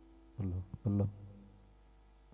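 A voice briefly calls out through a loudspeaker.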